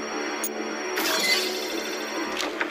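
An electronic chime rings out as a puzzle is solved.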